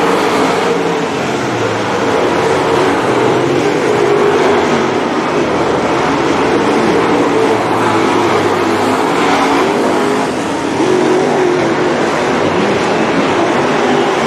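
Engines rev up and down as cars take the turns.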